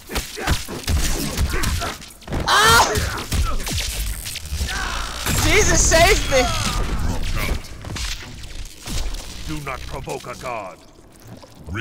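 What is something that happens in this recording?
Punches and electric crackles hit hard in a fight.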